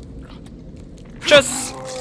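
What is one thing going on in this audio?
A zombie growls and lunges.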